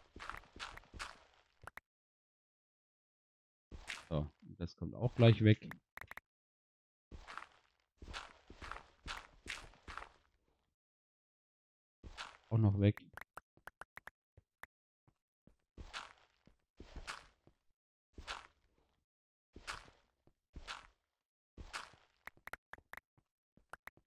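Gravelly crunching sounds come in quick repeated bursts as blocks are dug out.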